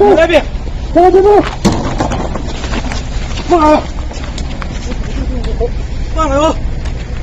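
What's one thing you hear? A man shouts in distress outdoors, close by.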